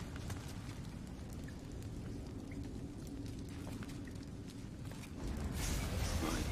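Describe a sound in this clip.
A fire crackles and hisses close by.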